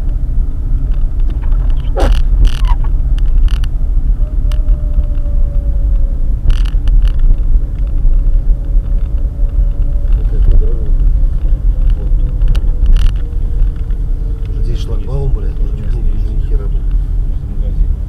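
Tyres crunch over packed snow.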